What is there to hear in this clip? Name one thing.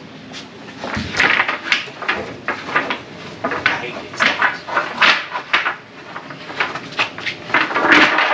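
Wooden boards knock and scrape as they are moved.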